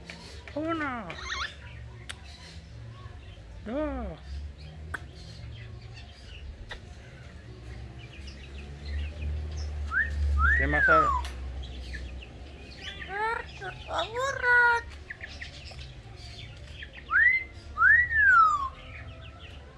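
A parrot squawks and whistles in sweeping, gliding calls, close by.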